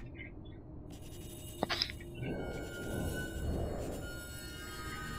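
A magical spell shimmers with a bright, ringing hum.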